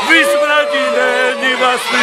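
A man shouts excitedly close by.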